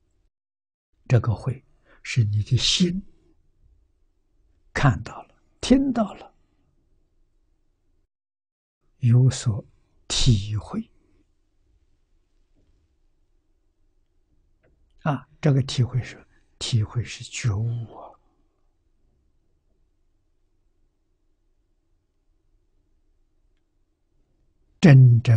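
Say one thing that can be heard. An elderly man speaks calmly in short phrases with long pauses, close to a microphone.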